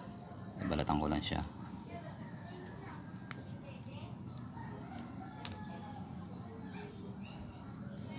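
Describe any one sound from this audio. Pliers snip a thin wire.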